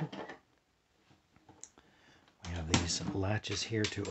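A metal case latch clicks open.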